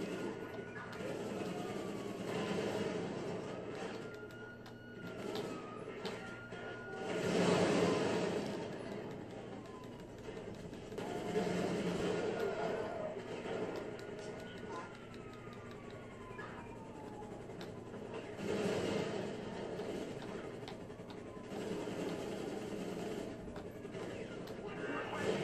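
A helicopter whirs overhead.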